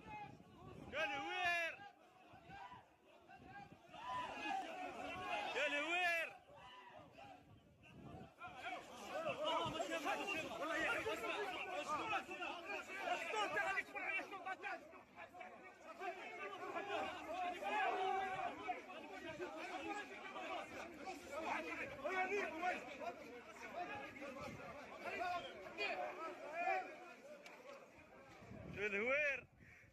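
Men shout loudly in sharp bursts nearby.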